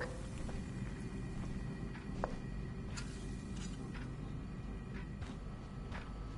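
Footsteps tread slowly across a wooden floor.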